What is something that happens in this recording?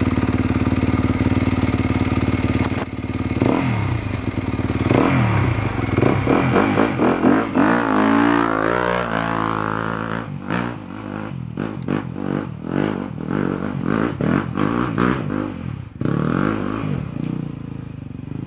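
Trail bike engines rev as the bikes climb a rocky track.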